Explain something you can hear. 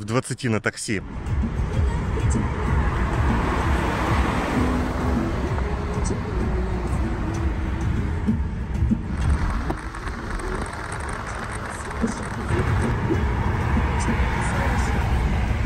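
A car engine and tyres rumble steadily on a highway.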